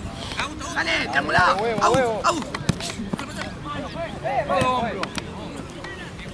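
Young men and women shout and call out outdoors during a game.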